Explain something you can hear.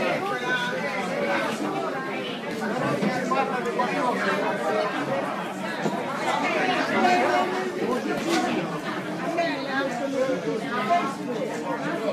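Many men and women talk over one another nearby.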